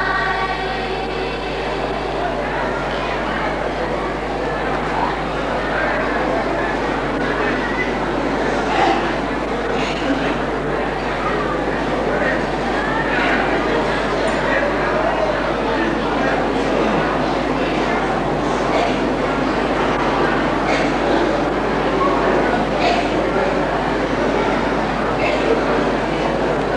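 A young man chants into a microphone in a large echoing hall.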